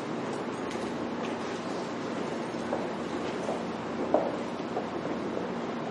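Footsteps cross a quiet room.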